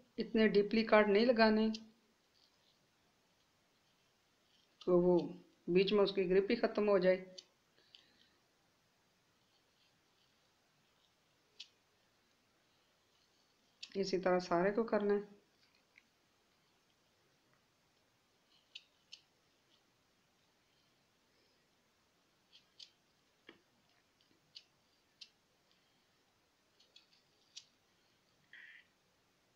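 A small knife cuts and scrapes into a firm vegetable with soft clicks.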